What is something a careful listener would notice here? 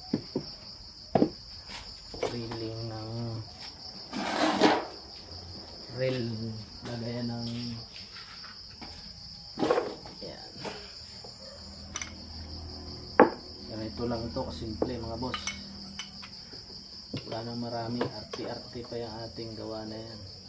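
Metal parts click and clatter as they are handled.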